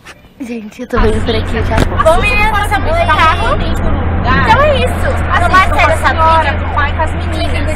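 Young girls sing loudly close by.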